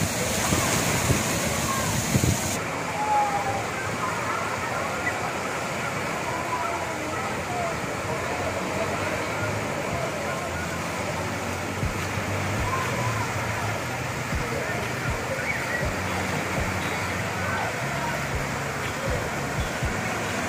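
A crowd of people shouts and laughs at a distance.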